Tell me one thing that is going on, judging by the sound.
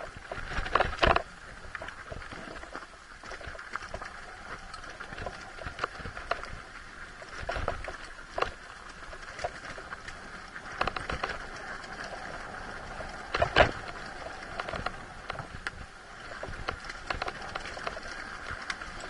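A dirt bike engine drones and revs up close.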